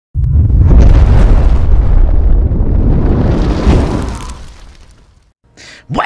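A fiery burst roars and then fades away.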